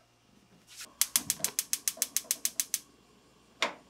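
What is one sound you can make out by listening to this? A gas stove igniter clicks rapidly.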